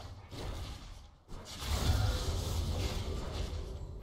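Magic spells crackle and weapons clash in a fantasy battle.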